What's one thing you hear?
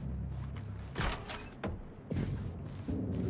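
A heavy door swings open.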